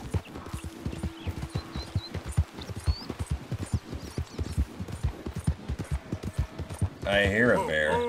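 Horse hooves gallop rhythmically on a dirt trail.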